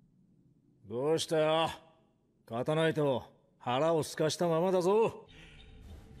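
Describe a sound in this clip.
A man speaks in a teasing tone.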